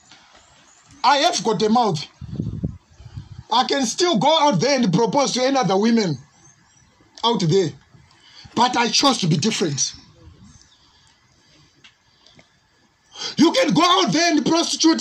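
A man preaches loudly and with passion through a microphone, in bursts with pauses.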